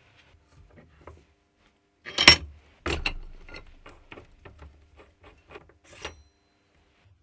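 Metal parts clink and click against each other.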